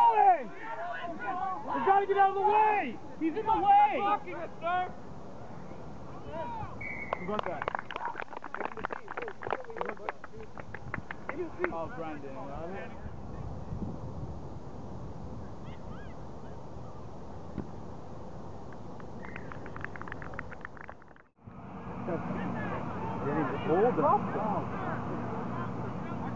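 Men shout and call out close by, outdoors.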